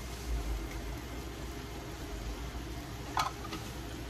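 A metal spoon clinks against a frying pan.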